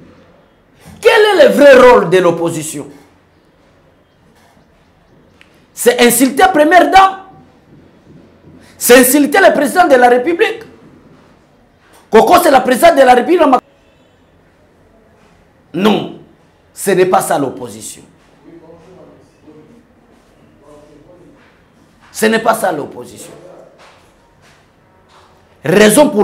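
A man speaks forcefully into a close microphone, in short bursts with pauses.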